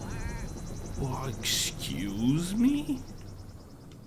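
A man talks casually close to a microphone.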